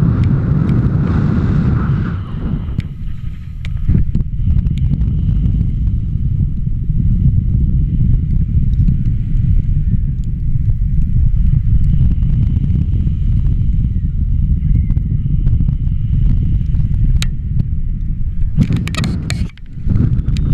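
Strong wind buffets a microphone, roaring throughout.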